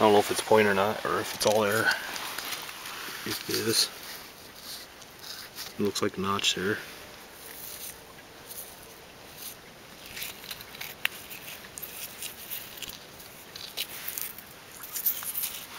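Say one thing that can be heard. Shallow water trickles softly over pebbles.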